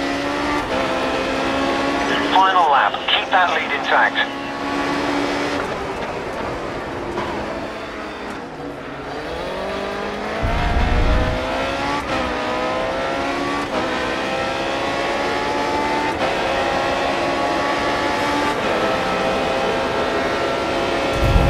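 A racing car engine roars and whines, rising and falling in pitch as it shifts gears.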